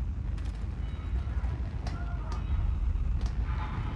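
Hands and boots clank on a metal ladder.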